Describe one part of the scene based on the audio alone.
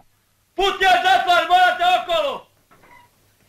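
A middle-aged man shouts loudly close by.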